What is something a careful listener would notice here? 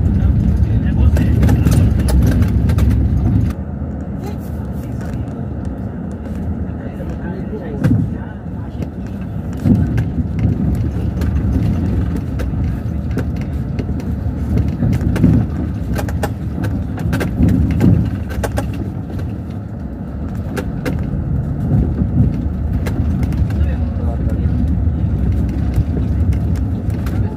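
Tyres roll and rattle over a bumpy dirt road.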